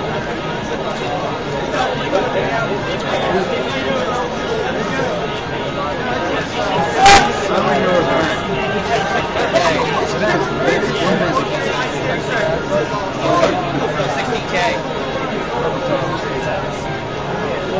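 Keys clatter on a computer keyboard as a man types quickly.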